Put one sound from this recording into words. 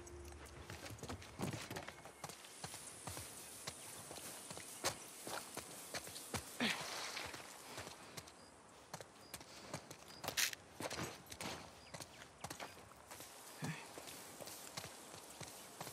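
Footsteps crunch and rustle through tall grass.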